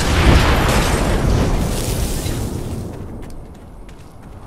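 A loud roaring rumble fades away.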